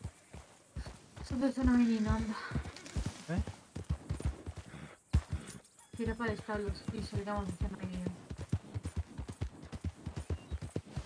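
A horse's hooves thud in a quick, steady gallop on dry ground.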